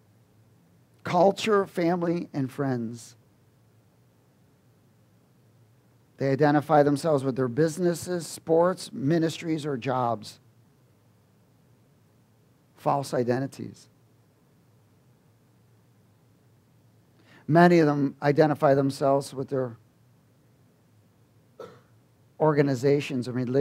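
A man speaks calmly through a headset microphone, pausing between phrases.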